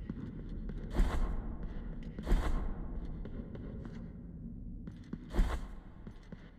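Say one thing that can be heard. A sword swishes and clashes in sharp strikes.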